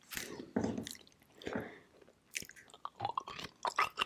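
A young woman crunches and chews a chalky stone.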